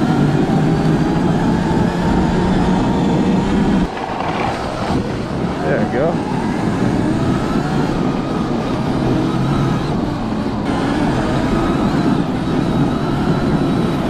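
An electric motor whines steadily.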